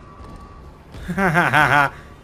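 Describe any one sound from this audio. A young man exclaims loudly and close into a microphone.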